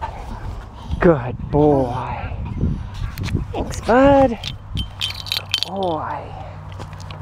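A dog whines at close range.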